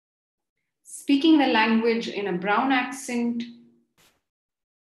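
A young woman reads out calmly through an online call.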